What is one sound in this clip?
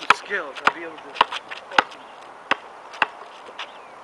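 A basketball bounces on hard ground.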